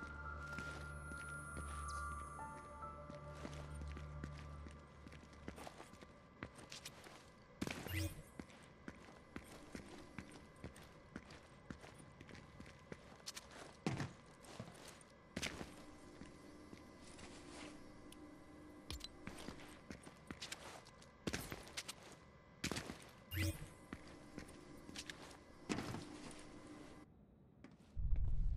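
Footsteps sound on a tiled floor.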